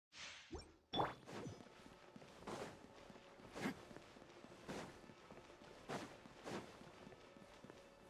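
Footsteps patter on stone at a steady running pace.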